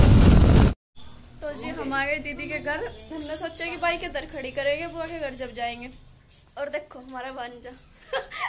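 A young woman talks animatedly, close by.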